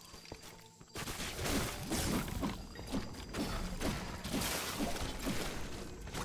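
Weapons strike enemies with rapid, heavy thuds and crunches.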